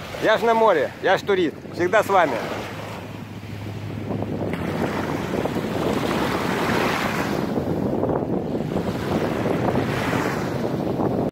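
Small waves lap and splash gently at the shore.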